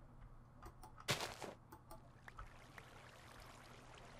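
Water splashes out of a bucket.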